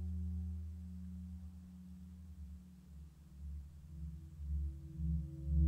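A record turntable spins with a low, steady motor hum.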